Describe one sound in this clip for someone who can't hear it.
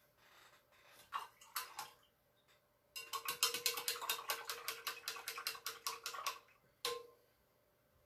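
A paintbrush rattles and clinks quickly against the inside of a glass jar of water.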